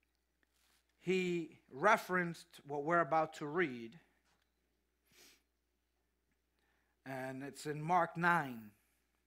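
A man speaks through a microphone in a large room, pausing between phrases.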